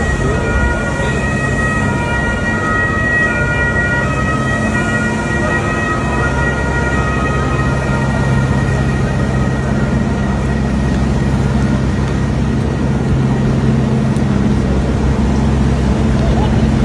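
Rain falls steadily on wet pavement outdoors.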